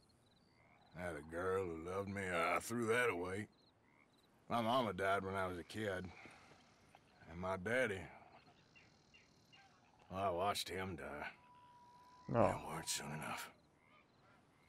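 A man speaks slowly and quietly, with long pauses.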